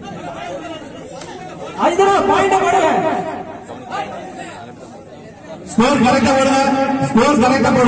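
A young man chants rapidly and breathlessly.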